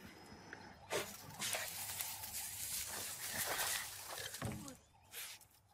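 A badger rustles and scrabbles in dry straw.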